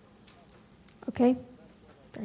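A young woman speaks up briefly and loudly into a nearby microphone.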